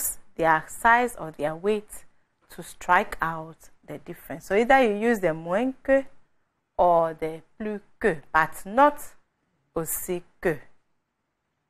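A young woman speaks calmly and clearly into a microphone.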